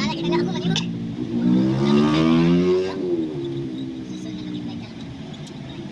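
A car engine hums and rises and falls in pitch as the car drives along.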